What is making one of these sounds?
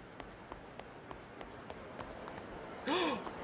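Quick footsteps run across hard pavement.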